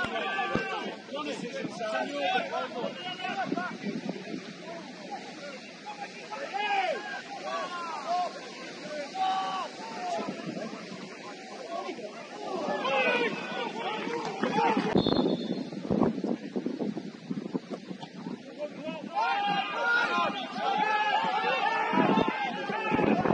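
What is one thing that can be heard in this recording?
Young women shout and call to each other across an open outdoor pitch.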